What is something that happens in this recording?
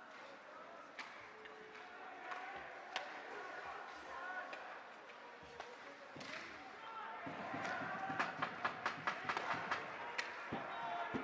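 Hockey sticks clack against a puck on the ice.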